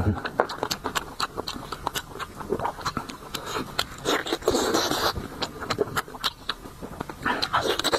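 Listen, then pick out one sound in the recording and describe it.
Food squelches and tears in a man's hands.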